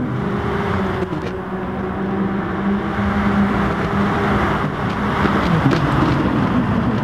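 Racing car engines roar steadily as a pack of cars speeds along.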